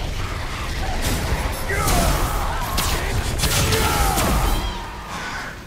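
Heavy blows and metallic impacts clash in a close fight.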